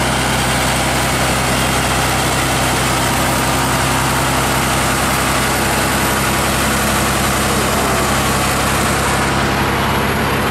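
A heavy truck engine rumbles loudly close by.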